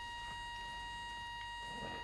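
A weapon strikes with dull thuds.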